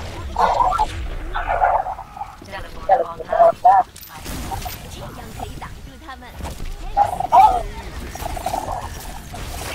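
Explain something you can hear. Game gunfire crackles in short bursts.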